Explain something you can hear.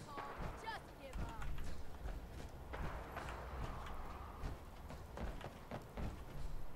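Heavy metal footsteps thud and clank at a steady walking pace.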